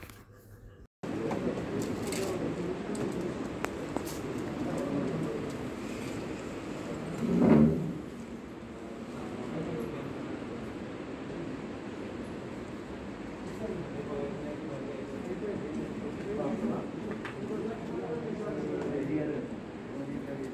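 Men and women chatter in the background of an echoing room.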